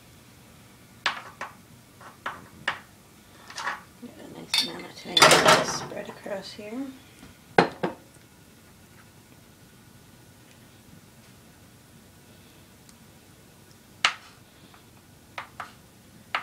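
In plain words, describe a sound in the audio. A spoon spreads sauce, tapping and scraping against a pan.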